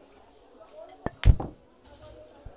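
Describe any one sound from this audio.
A cue strikes a snooker ball with a sharp knock.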